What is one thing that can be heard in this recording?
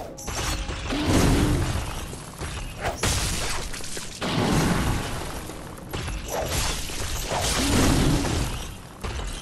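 A large creature roars and growls loudly.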